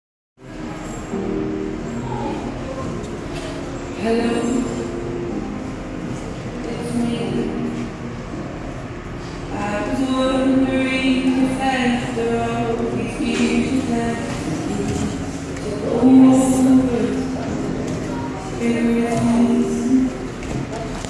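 Bare feet thud and slide on a wooden floor.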